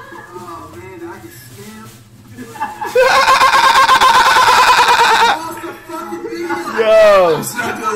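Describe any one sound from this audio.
A young man laughs loudly over a microphone.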